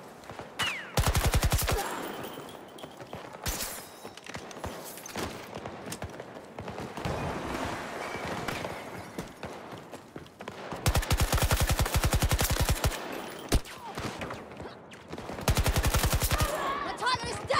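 A rifle fires rapid automatic bursts close by.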